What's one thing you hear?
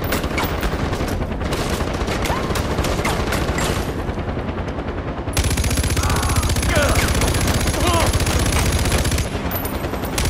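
A heavy machine gun fires rapid bursts.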